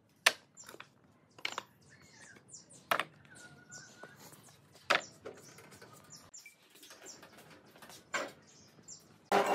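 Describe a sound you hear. Wooden boards clatter as they are stacked and dropped.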